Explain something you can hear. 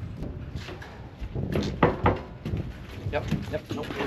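A cow's hooves clatter on a metal floor.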